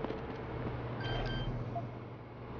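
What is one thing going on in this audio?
Electronic keypad beeps sound briefly.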